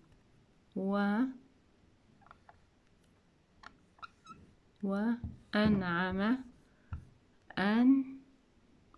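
A marker pen squeaks and scrapes across a whiteboard.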